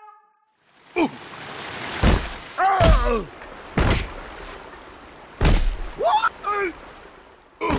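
Rushing water whooshes down a slide.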